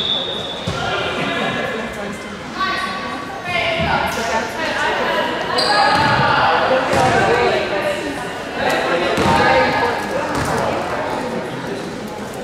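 Spectators chatter in the stands.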